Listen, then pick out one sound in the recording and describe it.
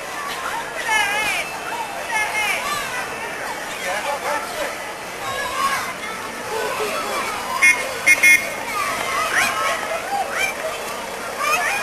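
A crowd of adults and children chatters and calls out nearby outdoors.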